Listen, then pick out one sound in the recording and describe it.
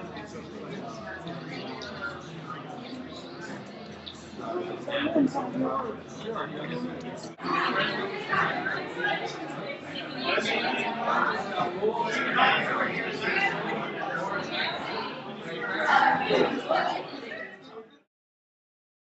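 A crowd of men and women chatters in a room that echoes.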